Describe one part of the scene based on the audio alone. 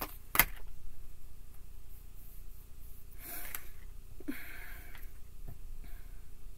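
Cards shuffle and slap softly on a table.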